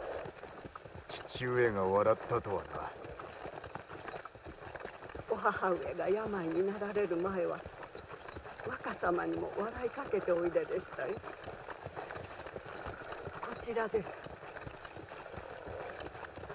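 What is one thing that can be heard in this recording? Horses' hooves clop slowly on a dirt path.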